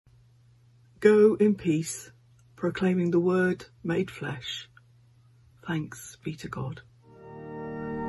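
An older woman speaks calmly, close to a microphone.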